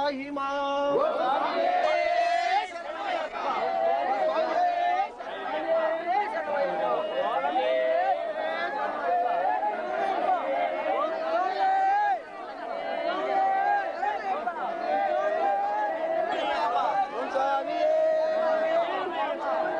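A group of men chant and sing loudly together.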